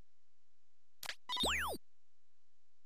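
A bright electronic chime with falling and rising tones sounds.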